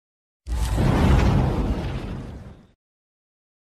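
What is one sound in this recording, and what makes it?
A fireball bursts with a loud roaring boom that rumbles away.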